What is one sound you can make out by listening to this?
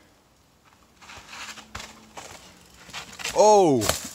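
A mountain bike rattles down over rock.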